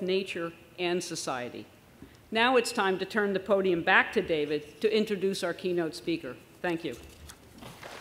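An elderly woman speaks calmly through a microphone in a large hall.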